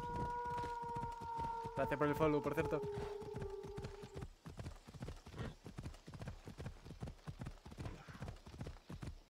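Footsteps thud quickly and steadily on a dirt path.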